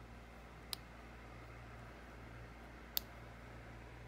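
A needle clicks sharply twice as it is pushed through thick fabric.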